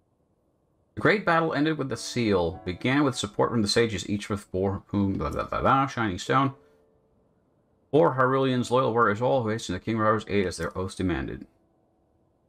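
A man reads aloud calmly, close to a microphone.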